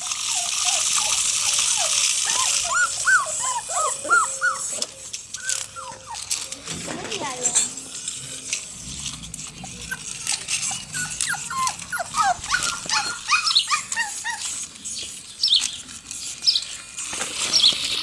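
Puppies whine and yelp in high, squeaky bursts.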